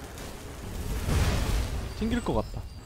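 A burst of magic flame whooshes.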